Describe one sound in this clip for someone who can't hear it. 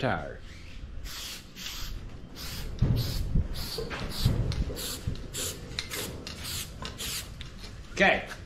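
A spray can rattles as it is shaken.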